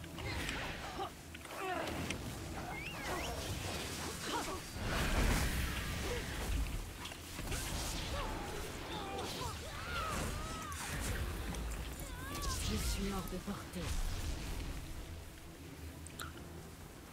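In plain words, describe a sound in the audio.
Game combat sounds whoosh and crash in quick bursts.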